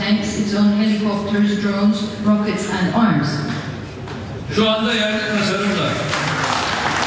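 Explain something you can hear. A man speaks slowly and formally into a microphone.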